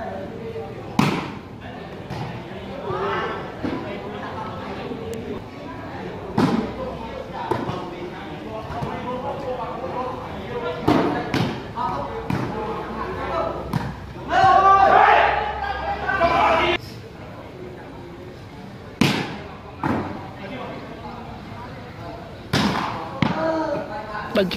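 Players kick a ball with sharp thuds.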